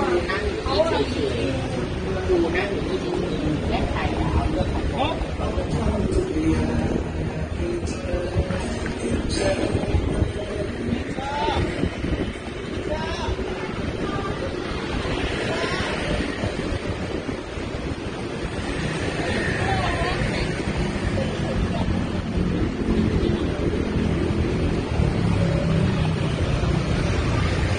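Traffic hums steadily along a busy street outdoors.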